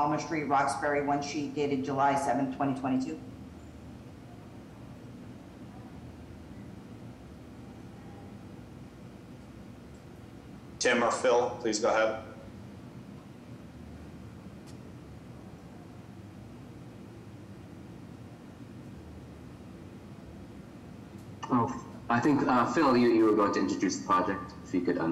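A woman speaks briefly through an online call, with long pauses.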